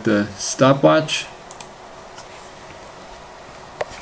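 A computer mouse button clicks once.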